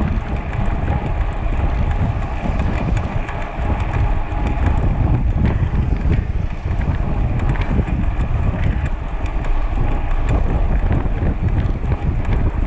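Bicycle tyres hum on a rough road.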